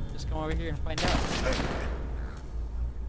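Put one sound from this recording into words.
A rocket launcher fires with a loud whooshing blast.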